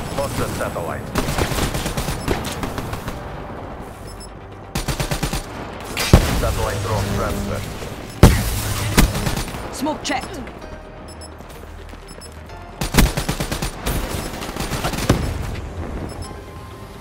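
Rapid gunfire bursts out in short loud volleys.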